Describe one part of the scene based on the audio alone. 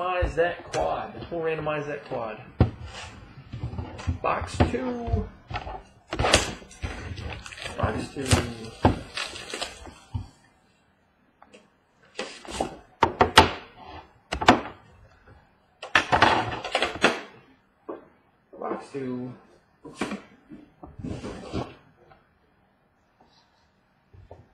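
Hard boxes knock and clatter on a wooden table.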